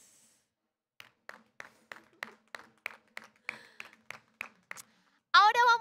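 A woman claps her hands in a steady rhythm.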